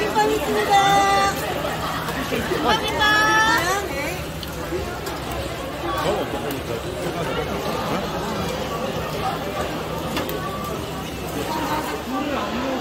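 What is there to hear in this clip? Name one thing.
Metal spatulas scrape and tap on a hot griddle.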